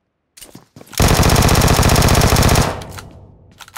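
An automatic rifle fires a rapid, loud burst.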